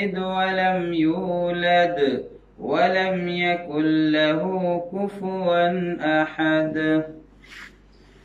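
A man chants in a melodic, resonant voice close by.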